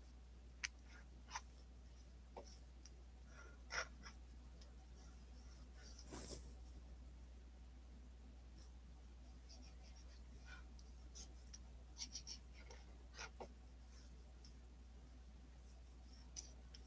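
A marker pen taps and scratches softly on paper.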